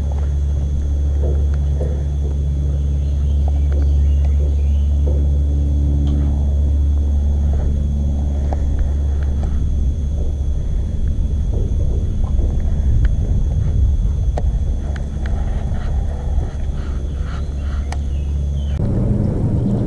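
An electric boat motor hums steadily.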